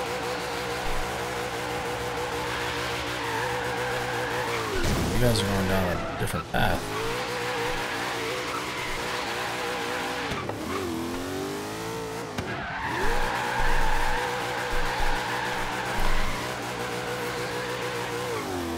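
A car engine roars and revs up and down throughout.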